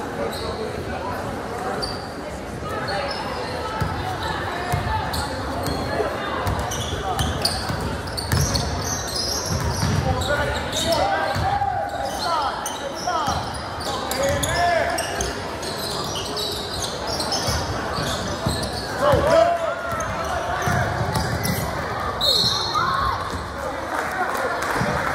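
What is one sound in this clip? A crowd of spectators murmurs and calls out throughout.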